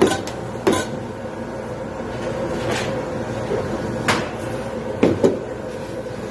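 A knife taps and knocks as food is cut on a plate.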